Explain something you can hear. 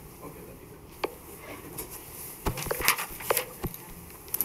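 Large stiff boards rattle and knock as they are handled.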